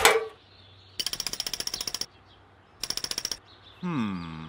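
A woodpecker rapidly drums on a tree trunk.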